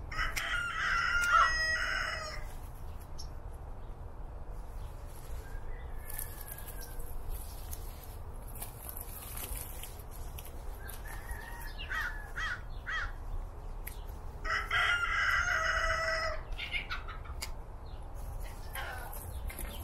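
Lettuce leaves rustle and tear as they are picked.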